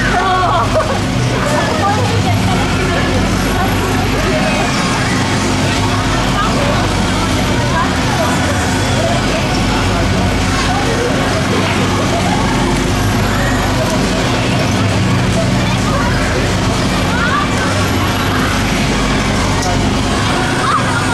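Riders scream and shout with excitement.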